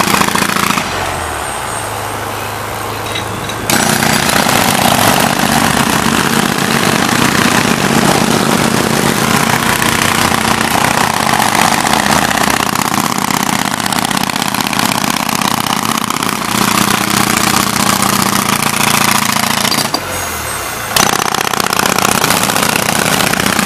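An air compressor engine drones steadily.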